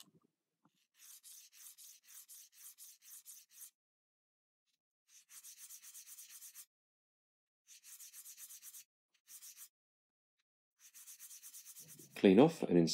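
A glass lens grinds in short rasping strokes on a diamond sharpening plate.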